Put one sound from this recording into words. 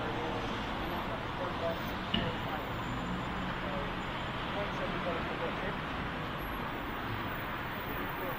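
A power wheelchair's motor hums as it rolls closer.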